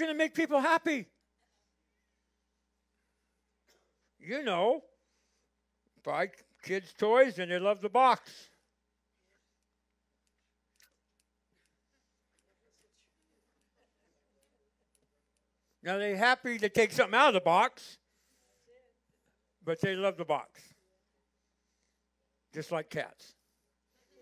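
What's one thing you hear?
An older man speaks slowly and calmly through a microphone, with long pauses.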